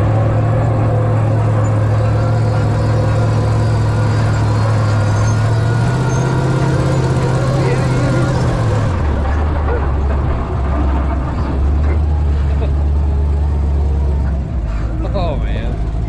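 An engine hums steadily close by, shifting pitch partway through.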